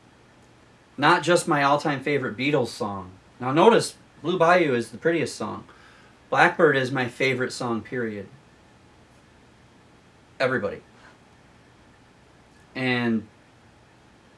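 A middle-aged man talks calmly and with animation close by.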